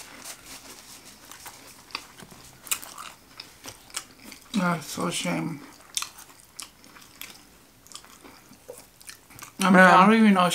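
A woman chews and crunches food close by.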